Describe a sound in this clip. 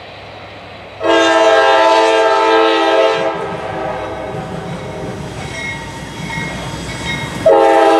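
A locomotive horn blares loudly in long blasts.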